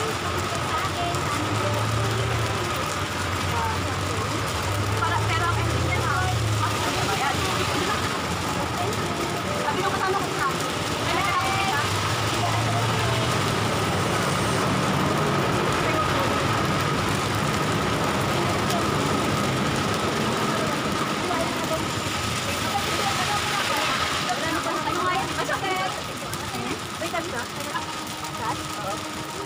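Several young women chat casually nearby.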